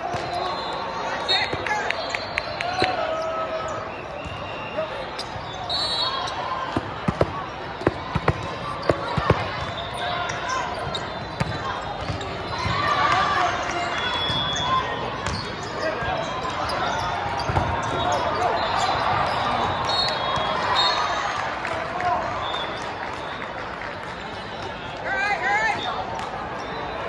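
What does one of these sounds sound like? Rubber shoes squeak on the court floor.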